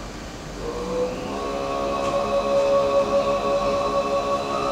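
Bowed strings and plucked lutes play along.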